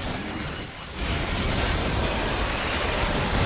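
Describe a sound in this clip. Magic spells crackle and burst in a fight.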